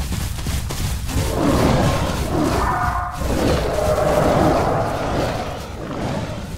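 Large reptiles growl and hiss close by.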